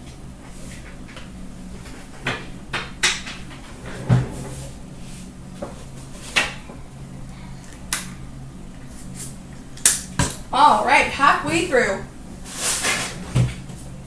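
Card packs tap and clatter against a glass counter.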